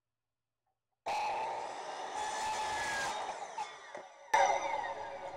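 A power saw whirs and cuts through a board.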